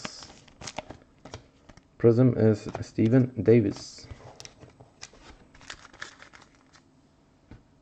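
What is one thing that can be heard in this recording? Plastic card holders click and rustle as they are handled.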